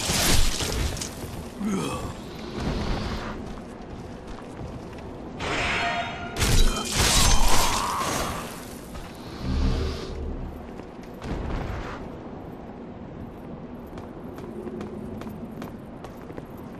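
Metal armour clanks with heavy footsteps.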